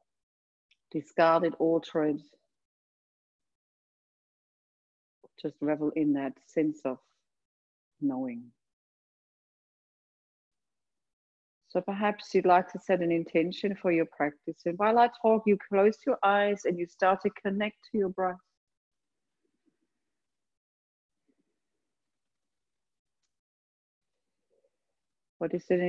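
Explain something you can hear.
A woman speaks calmly and slowly, close to a microphone, with long pauses.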